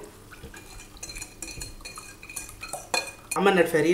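Liquid pours and splashes into a metal pot.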